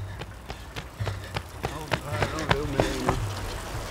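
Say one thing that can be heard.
Bicycles roll past close by with whirring wheels.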